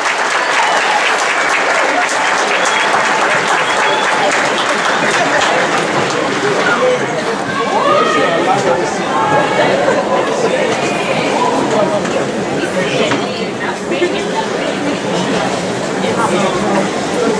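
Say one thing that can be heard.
A large audience cheers and claps in an echoing hall.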